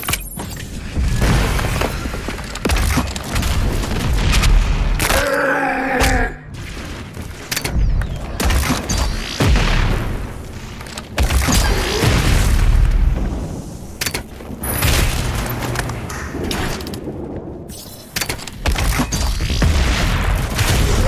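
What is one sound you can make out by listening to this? A heavy gun fires in loud bursts.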